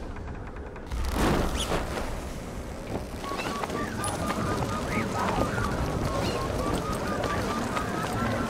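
Wind rushes steadily past a paraglider in flight.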